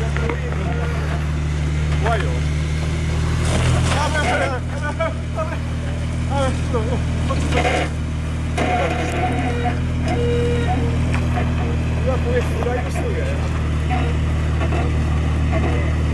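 An off-road vehicle's engine rumbles steadily at low revs.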